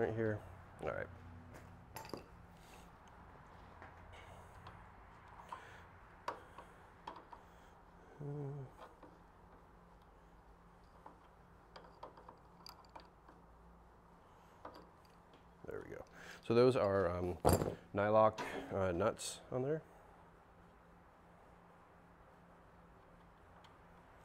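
Metal parts clink and knock on a metal table.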